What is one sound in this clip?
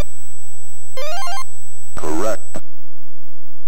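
A quick electronic jingle plays.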